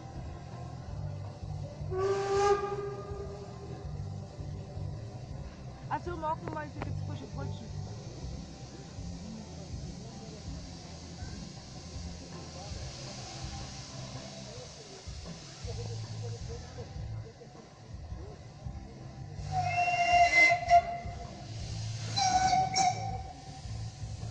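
A steam locomotive chuffs in heavy rhythmic puffs.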